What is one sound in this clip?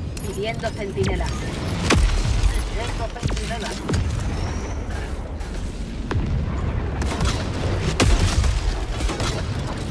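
Explosions rumble heavily nearby.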